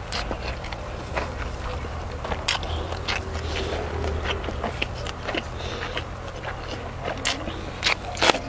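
A young man chews food wetly and loudly close to a microphone.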